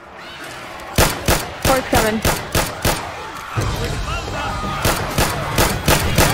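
Pistol shots fire in quick succession.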